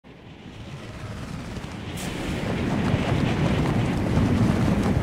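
Wind rushes past steadily and grows louder.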